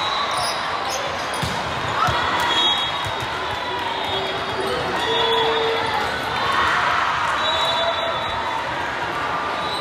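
A volleyball thumps off a player's arms.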